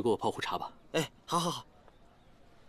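A young man speaks cheerfully and loudly, close by.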